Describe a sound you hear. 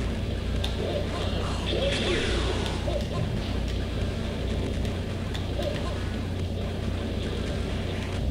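Video game punches and kicks land with sharp thuds.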